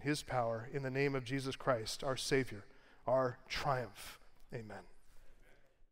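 A middle-aged man speaks steadily into a microphone.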